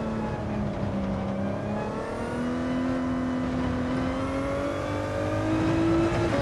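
A racing car engine drones loudly, its pitch dropping at a gear change and then rising steadily as it speeds up.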